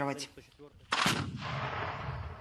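A heavy gun fires with a loud boom.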